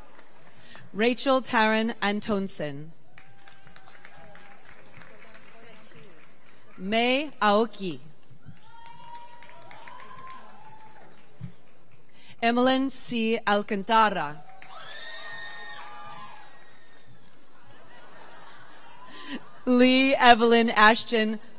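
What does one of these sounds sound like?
A woman reads out names through a loudspeaker in a large hall.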